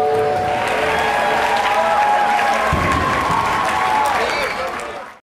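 A woman sings into a microphone over a loudspeaker.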